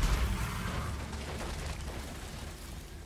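A burst of sparks crackles and hisses after an explosion.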